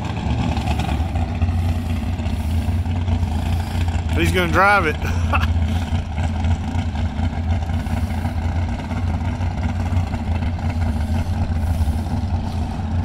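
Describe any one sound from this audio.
A dragster engine idles with a deep, steady rumble outdoors.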